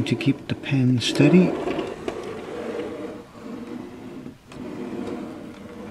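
A craft knife scrapes along paper.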